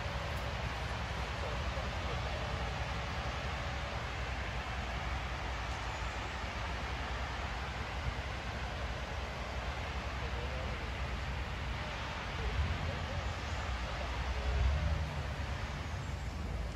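Light rain hisses steadily outdoors.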